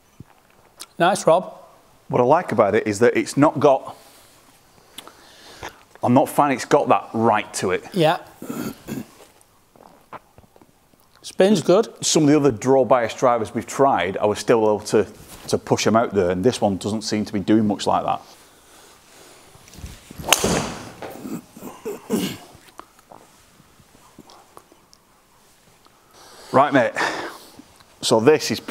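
A man talks calmly and clearly to the listener at close range.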